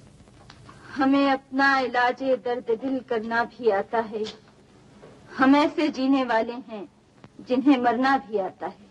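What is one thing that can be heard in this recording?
A young woman speaks with tension, close by.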